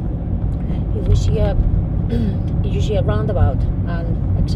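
A woman speaks calmly inside a car.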